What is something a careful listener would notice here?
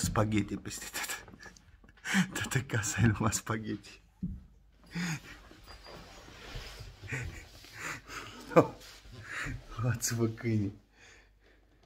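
A middle-aged man laughs close to the microphone.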